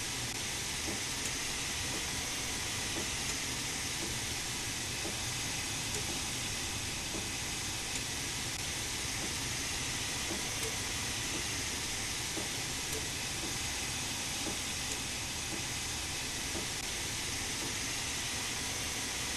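Steam hisses steadily inside a locomotive cab.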